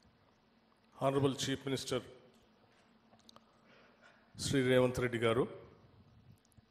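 A second middle-aged man speaks calmly into a microphone.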